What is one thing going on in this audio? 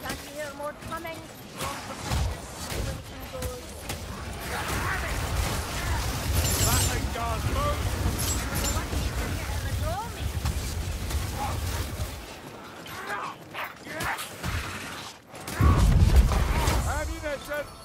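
Weapons clash and thud in a fight with creatures.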